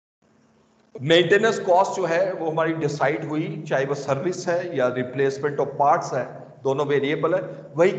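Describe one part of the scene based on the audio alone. An older man lectures with animation through an online call microphone.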